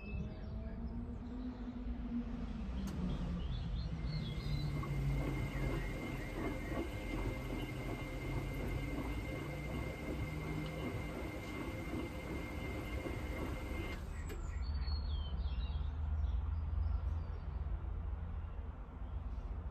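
Water and suds slosh inside a washing machine drum.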